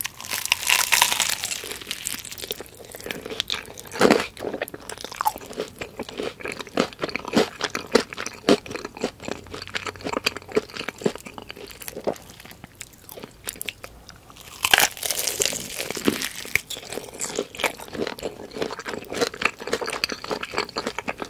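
A young woman chews crispy fried chicken close to a microphone.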